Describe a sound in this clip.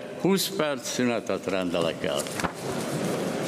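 An elderly man speaks calmly into a microphone in a large echoing hall.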